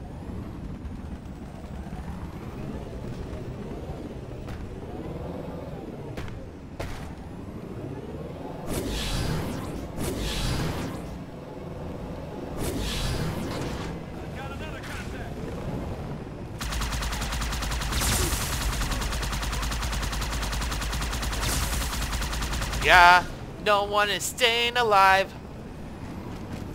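A hovering vehicle's engine hums and whooshes.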